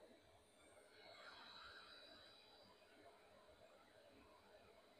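A hot air gun blows with a soft rushing hiss.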